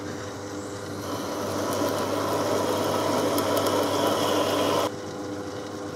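A drill bit grinds and hisses as it cuts into metal.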